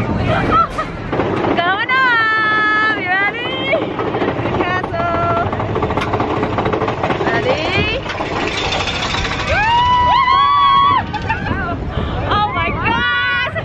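A young woman shouts with excitement close to the microphone.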